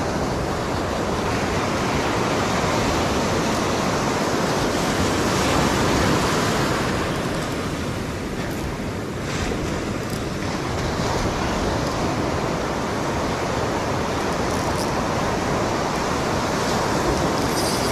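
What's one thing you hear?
Wind blows across the microphone.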